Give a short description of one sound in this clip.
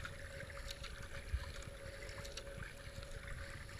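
A paddle splashes into the water.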